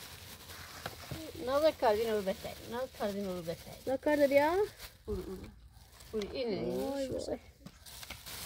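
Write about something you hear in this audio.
A little girl speaks in a high voice nearby.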